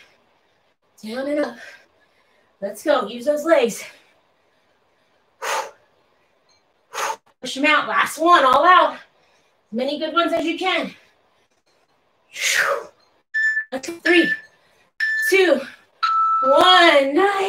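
A woman speaks with animation in short bursts, close by.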